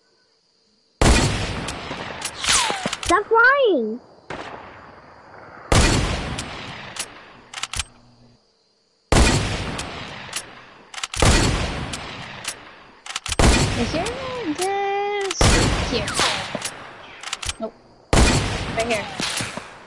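A gun fires loud blasts, each followed by a rumbling echo.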